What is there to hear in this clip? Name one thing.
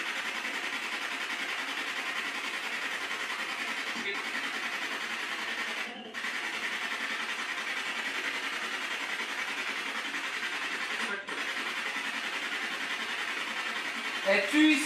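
A handheld radio hisses with steady static, briefly cutting out now and then.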